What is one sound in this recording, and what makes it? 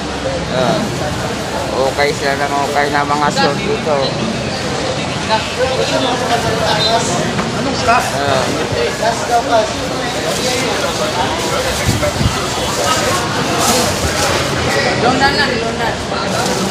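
Several men talk and chatter in the background.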